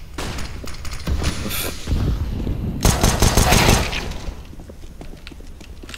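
A pistol fires several sharp shots.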